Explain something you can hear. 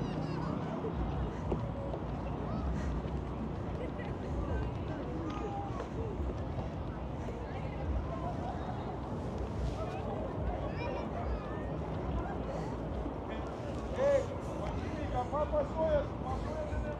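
Men and women chatter at a distance.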